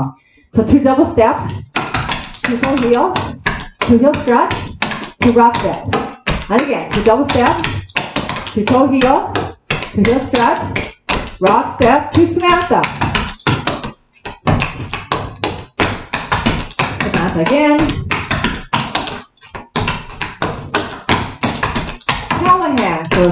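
A woman speaks steadily and clearly nearby, as if reading aloud.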